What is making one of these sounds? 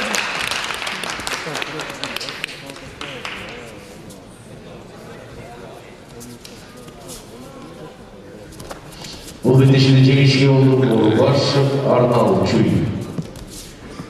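A crowd of spectators murmurs and calls out in a large echoing hall.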